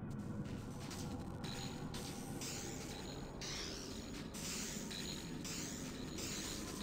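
A deep, rumbling roar of billowing smoke goes on steadily.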